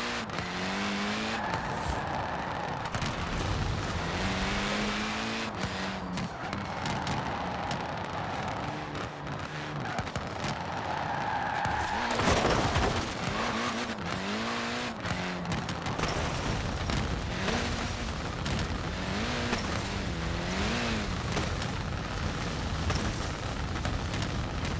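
A small car engine revs up and down throughout.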